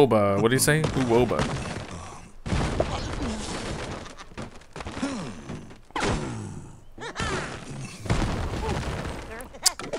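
Wooden planks and stone blocks crash and tumble down.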